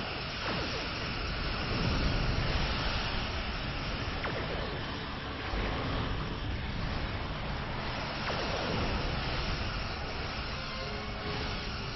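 Laser weapons zap and fire.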